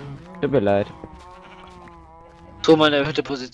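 A cow moos.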